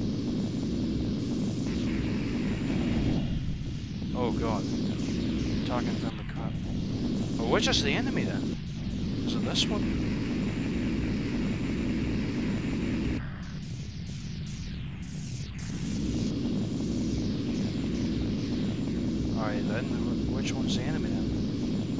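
A spacecraft engine rumbles low and steadily.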